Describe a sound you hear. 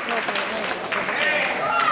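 Wrestlers thud onto the ring mat.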